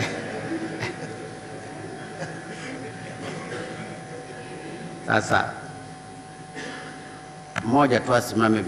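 A crowd murmurs softly in a large room.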